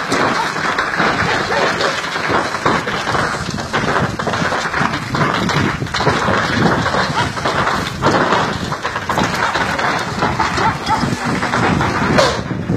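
Flames roar and crackle loudly nearby.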